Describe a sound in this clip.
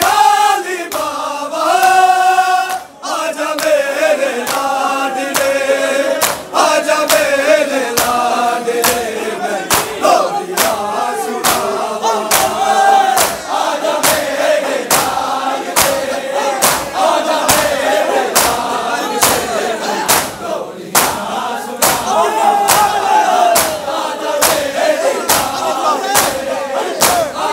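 A large crowd of men chants loudly in unison.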